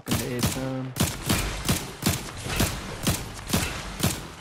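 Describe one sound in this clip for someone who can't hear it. A pickaxe strikes rock in quick, regular blows.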